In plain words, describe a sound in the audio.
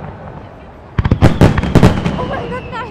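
Fireworks burst with loud booming bangs.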